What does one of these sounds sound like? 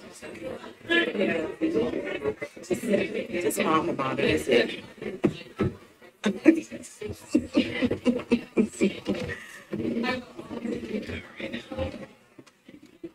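A crowd of men and women talks and murmurs in a large room.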